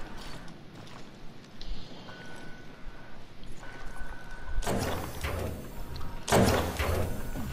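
Quick footsteps clatter on a metal floor.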